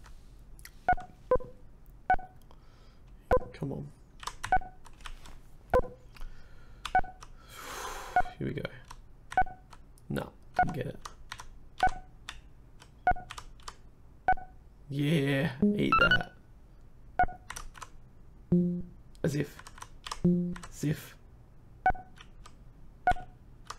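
Short electronic beeps sound each time a bouncing ball hits a paddle in a retro game.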